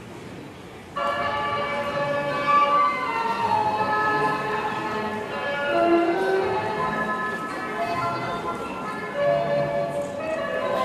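Traditional string and wind instruments play a lively melody.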